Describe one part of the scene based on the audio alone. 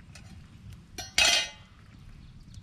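A metal lid clanks down onto stone.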